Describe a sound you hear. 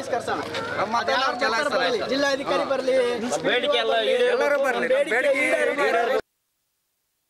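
A crowd of men shouts slogans loudly outdoors.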